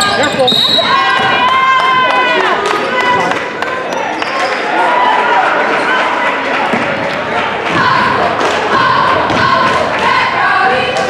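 A crowd of spectators chatters and calls out in the distance.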